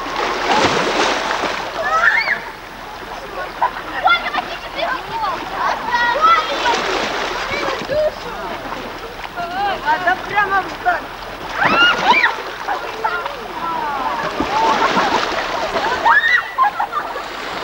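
Children and adults talk and call out excitedly nearby, outdoors.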